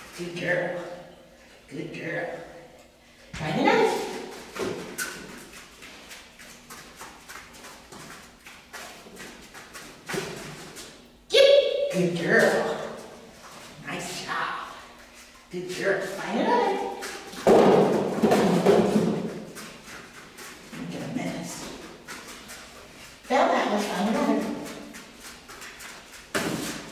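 A woman talks to a dog with animation, close by.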